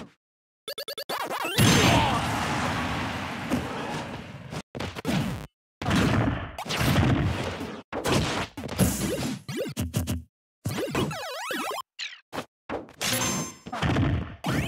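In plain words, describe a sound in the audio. A sword swishes and clangs in quick slashes.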